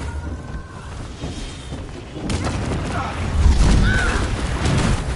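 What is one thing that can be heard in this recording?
Energy blasts crackle and zap.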